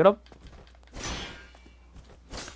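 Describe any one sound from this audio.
A sword clangs against a metal shield.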